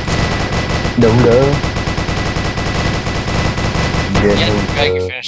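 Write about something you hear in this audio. Zombies groan and moan.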